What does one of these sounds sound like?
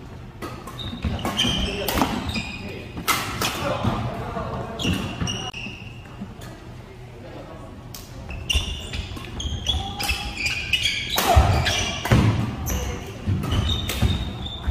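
Shoes squeak sharply on a wooden court.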